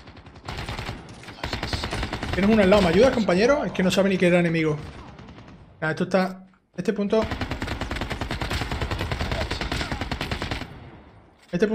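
Rapid automatic gunfire rattles.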